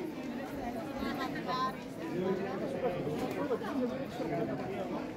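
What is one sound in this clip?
Several men and women chatter nearby in a lively crowd.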